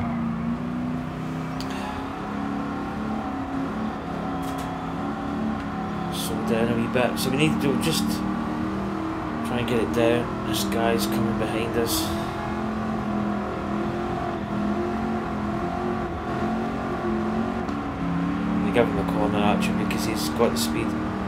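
A racing car engine drones steadily at high revs, its pitch climbing as it speeds up.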